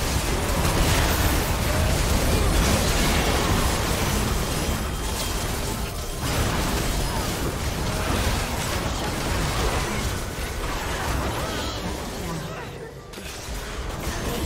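Magical battle effects crackle, whoosh and boom in quick succession.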